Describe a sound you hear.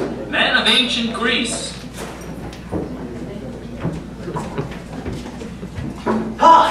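A man speaks loudly and theatrically in a large hall.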